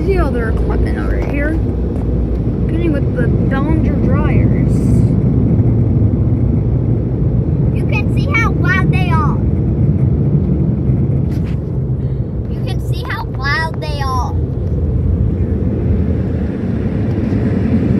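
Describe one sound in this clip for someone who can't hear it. Water jets spray against a car's windows, heard from inside the car.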